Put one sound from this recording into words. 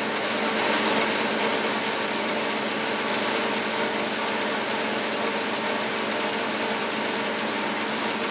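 A metal lathe spins with a steady whirring hum.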